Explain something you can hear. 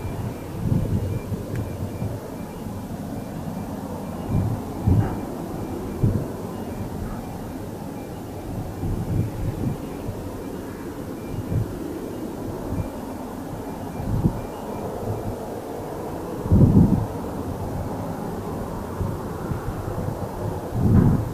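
A propeller plane drones steadily in the distance as it approaches.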